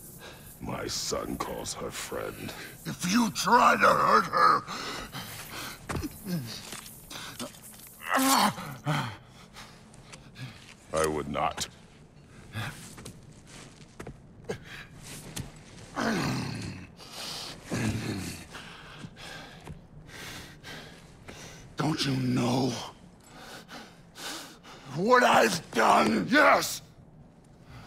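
A man speaks in a deep, gruff voice, close by.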